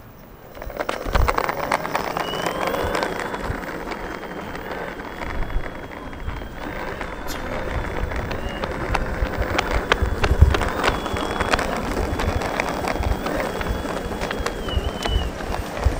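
Skateboard wheels roll and rumble over rough asphalt.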